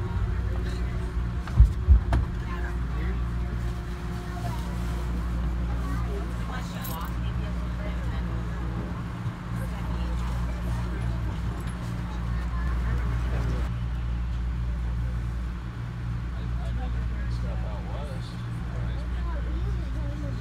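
A train engine hums steadily with a low rumble, heard from inside a carriage.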